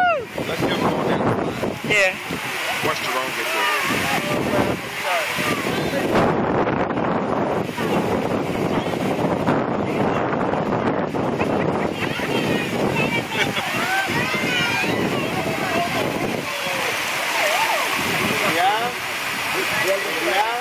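Children shout and laugh excitedly nearby, outdoors.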